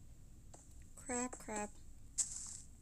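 A young girl speaks briefly and softly, close to a microphone.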